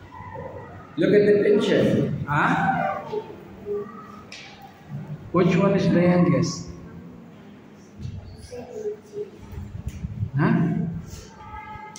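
A young boy speaks nearby, answering questions in a clear voice.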